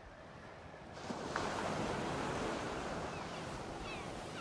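Waves wash up onto a sandy shore with a steady rush.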